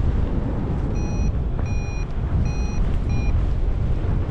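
A flight instrument beeps in a rapid series of short tones.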